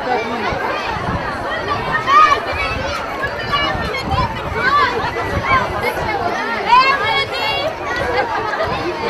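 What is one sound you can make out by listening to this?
A large crowd of adults and children chatters and calls out nearby, outdoors.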